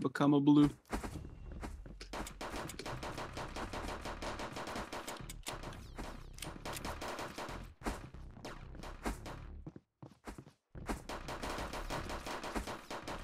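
Guns fire in rapid bursts in a video game.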